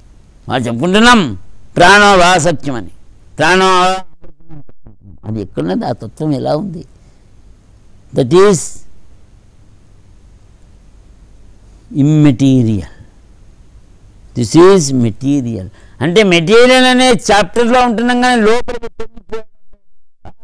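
An elderly man sings in long, drawn-out phrases close to a microphone, with pauses between them.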